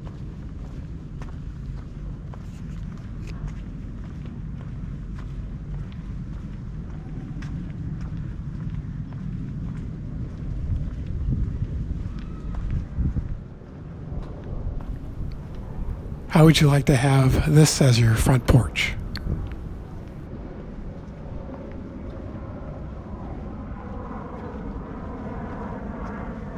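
Wind blows steadily outdoors, rumbling low.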